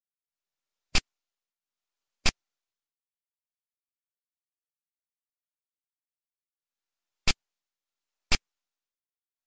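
Sharp electronic gunshot clicks from a retro computer game sound one at a time.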